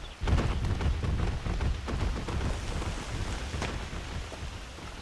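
A large creature rumbles low as it crawls away through undergrowth.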